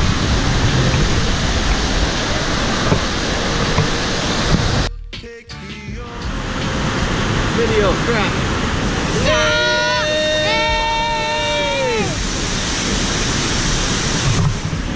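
A waterfall roars close by.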